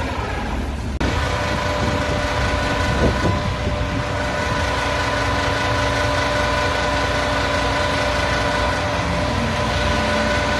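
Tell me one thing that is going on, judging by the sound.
A truck engine idles with a steady hum.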